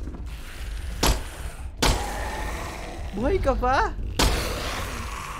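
Loud sudden bangs ring out as a creature lunges.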